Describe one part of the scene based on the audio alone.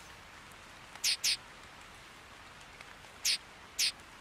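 A game menu cursor ticks with short, high blips.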